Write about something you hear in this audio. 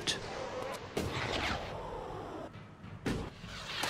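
A jetpack hisses and roars with thrust.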